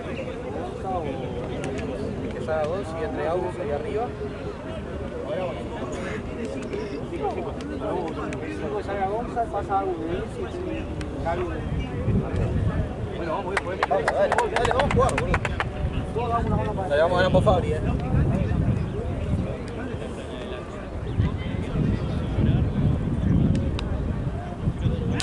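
Young men talk and call out to each other outdoors at a distance.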